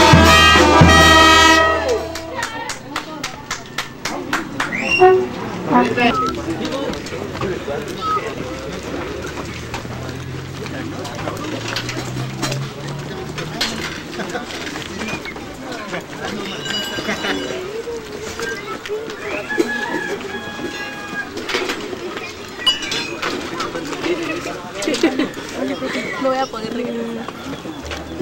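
A crowd of men, women and children chatter outdoors.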